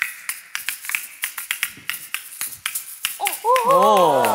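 Wooden balls clack rapidly against a wooden toy.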